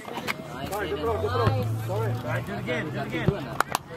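A soccer ball is kicked with a dull thud.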